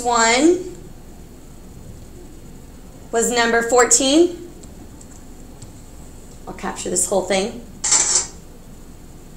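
A young woman speaks in short bursts, explaining as she teaches, heard through a microphone.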